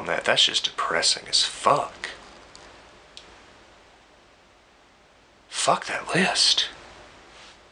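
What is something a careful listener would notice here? A young man speaks calmly and close up, with pauses.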